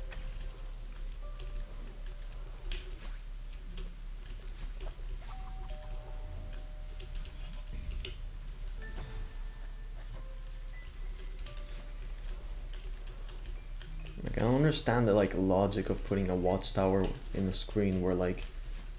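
Short electronic game blips and chimes sound now and then.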